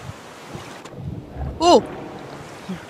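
Water splashes as someone plunges in.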